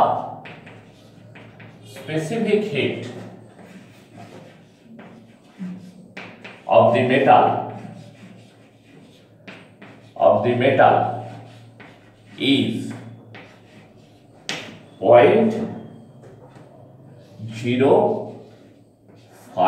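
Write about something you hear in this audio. A middle-aged man speaks slowly and calmly nearby, pausing between phrases.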